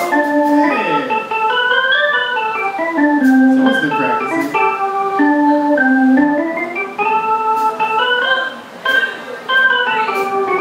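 A keyboard plays a quick melody.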